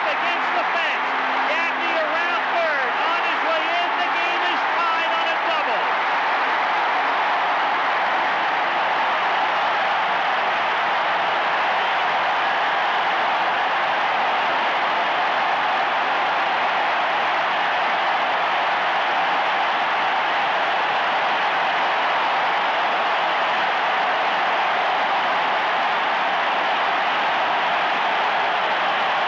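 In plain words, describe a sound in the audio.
A large crowd roars and cheers loudly in a big echoing stadium.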